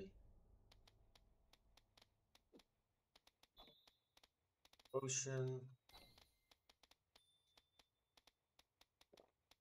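Soft footsteps tap steadily on stone.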